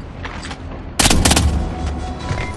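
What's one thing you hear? A silenced gun fires a single muffled shot.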